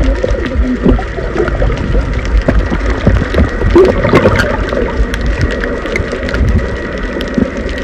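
Water rumbles and crackles softly underwater.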